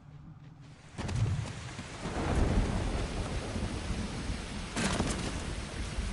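Water splashes and rushes loudly.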